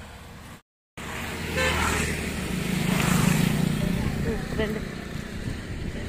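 A motorbike engine roars past close by and fades away.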